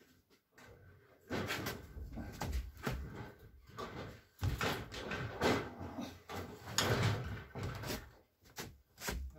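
A wooden board scrapes and bumps as it is dragged upward.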